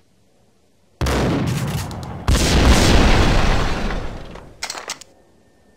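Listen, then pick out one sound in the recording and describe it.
A pump-action shotgun fires a loud blast.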